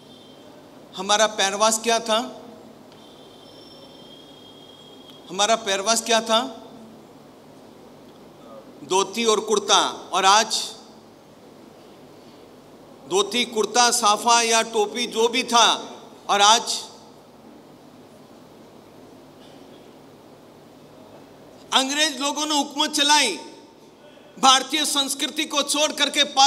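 An elderly man speaks calmly in short phrases, close to a microphone, with pauses between them.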